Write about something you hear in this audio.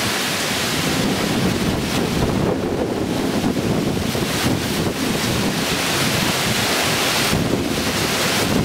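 Palm fronds thrash and rustle in the wind.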